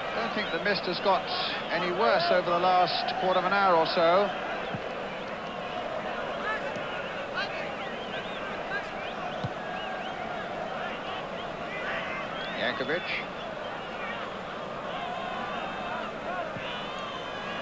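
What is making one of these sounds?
Spectators whistle shrilly across a stadium.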